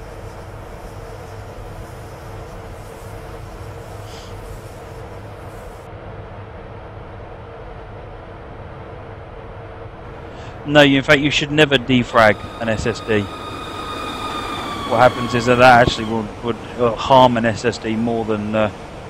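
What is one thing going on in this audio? A train's motor hums steadily as it rolls along the rails.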